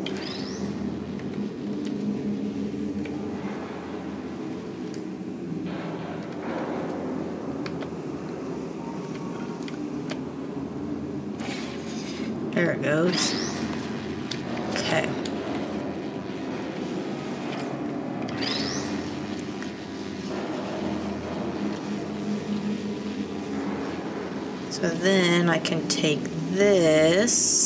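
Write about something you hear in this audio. Electricity crackles softly around a carried cube.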